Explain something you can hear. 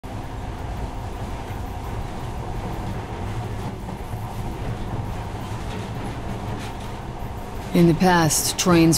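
A train car rumbles steadily along a tunnel.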